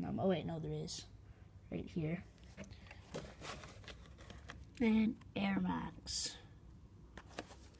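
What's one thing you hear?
Rustling and handling noises come close by.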